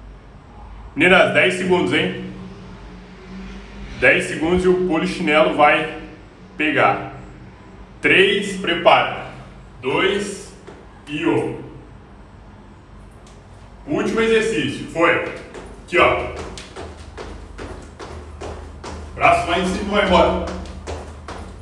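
A young man talks close by, breathing hard.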